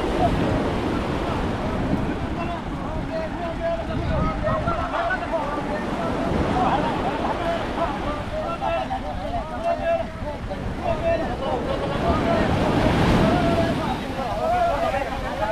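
Men call out and chant together outdoors.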